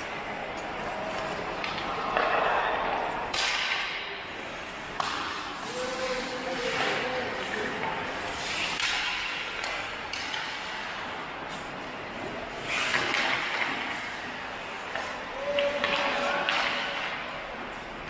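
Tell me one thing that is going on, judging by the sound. Ice skates scrape and carve across ice in a large echoing rink.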